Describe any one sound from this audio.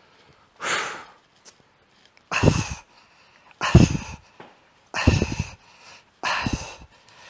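A man exhales forcefully and rhythmically, close by.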